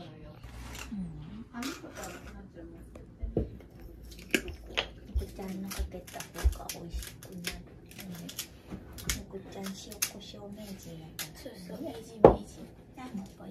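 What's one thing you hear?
Young women talk casually nearby.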